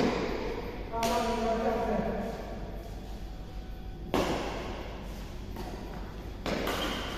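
A badminton racket strikes a shuttlecock with sharp pops in an echoing hall.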